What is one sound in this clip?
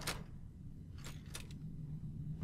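A metal panel clicks under a hand.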